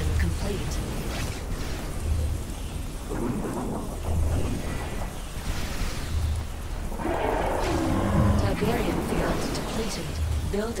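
Explosions thud and rumble.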